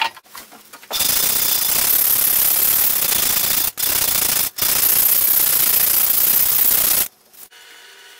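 Sandpaper scrubs quickly on wood.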